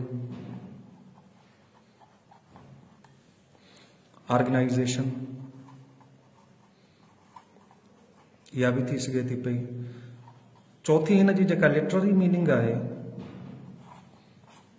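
A marker pen scratches across paper.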